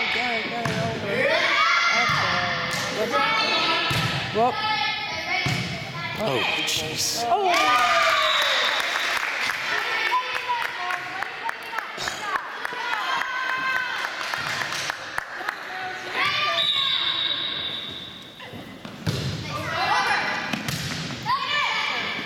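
Young girls shout and cheer in a large echoing gym.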